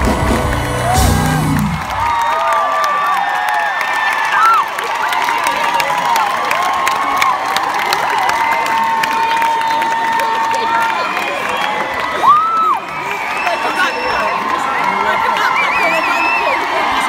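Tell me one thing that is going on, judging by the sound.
A large crowd of young women screams and cheers loudly outdoors.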